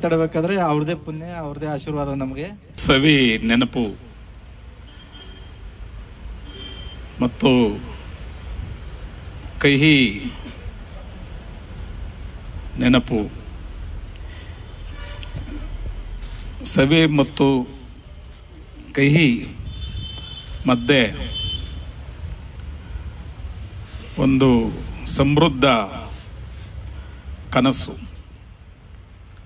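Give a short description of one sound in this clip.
A man speaks loudly into a microphone over loudspeakers, with pauses between phrases.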